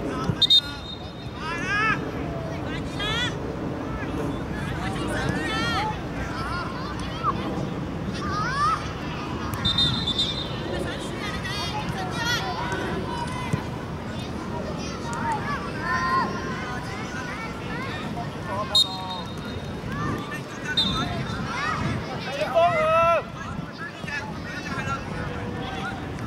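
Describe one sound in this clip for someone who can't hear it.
Young girls shout and call out to each other across an open outdoor pitch, at a distance.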